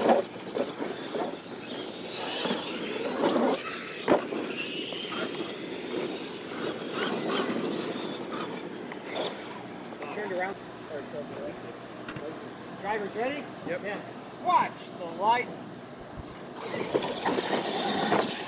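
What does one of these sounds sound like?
Small electric motors whine as toy trucks race over dirt.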